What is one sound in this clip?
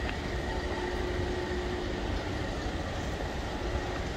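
A van engine hums nearby.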